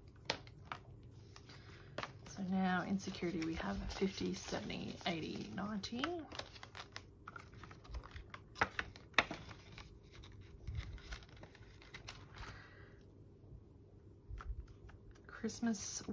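Banknotes and paper rustle and crinkle as they are handled.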